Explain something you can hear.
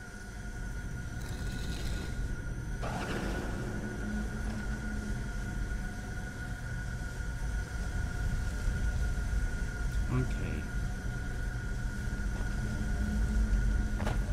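A magical beam hums steadily.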